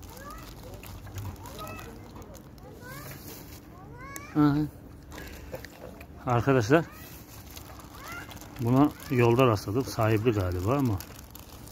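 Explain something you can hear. A pug chews dry pasta.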